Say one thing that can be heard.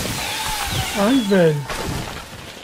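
A monster lets out a harsh, wavering screech.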